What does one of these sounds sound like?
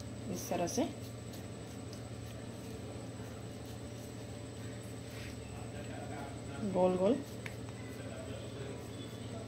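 Hands pat and press soft dough.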